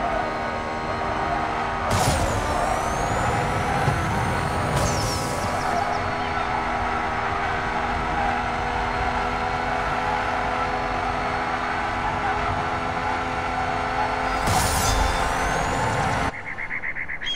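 A racing car engine roars at high speed.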